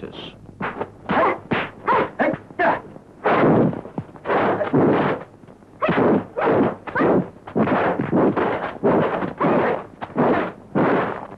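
Fists and kicks whoosh and thud in a fight.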